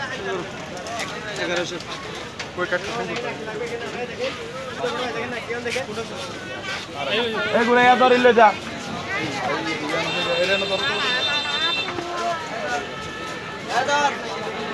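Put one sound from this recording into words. Several men and women talk and call out close by in a busy crowd.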